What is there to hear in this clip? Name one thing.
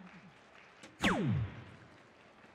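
An electronic dartboard plays a short falling electronic tone.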